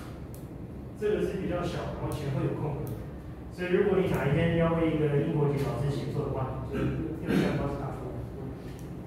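A man speaks calmly at a distance in a room with some echo.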